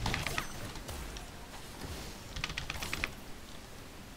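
Short clicking game sound effects play in quick bursts.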